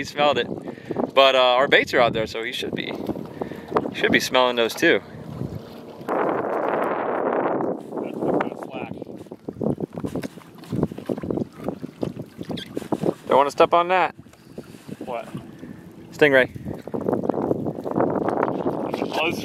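Wind blows outdoors across the water.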